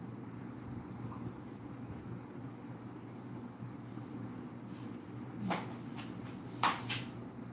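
A ceiling fan whirs with a steady low hum.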